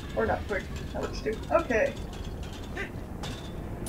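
Footsteps clank on a metal grate.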